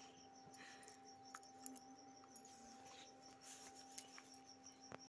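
A woman talks softly close by.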